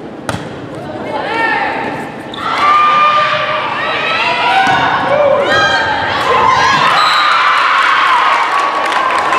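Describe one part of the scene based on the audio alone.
Young women shout and call out to each other.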